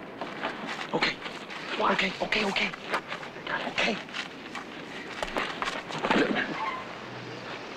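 A man grunts and gasps while grappling with another man, close by.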